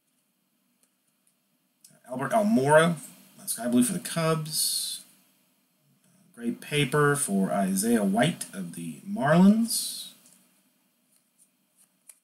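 Glossy trading cards slide and rustle between fingers.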